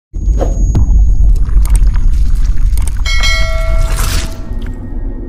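A ball shatters like glass with a loud crash.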